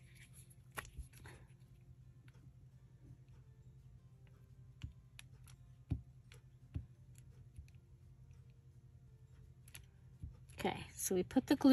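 A glue stick clicks and scrapes as it is twisted and rubbed on paper.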